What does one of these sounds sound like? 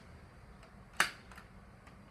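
A finger presses an elevator button with a click.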